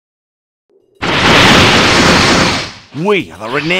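A whooshing burst sounds as a game character teleports away.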